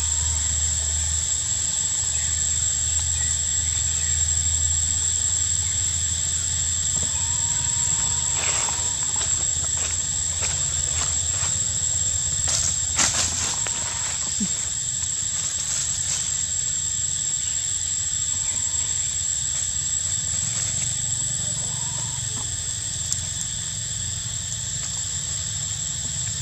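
Monkeys scramble on tree bark.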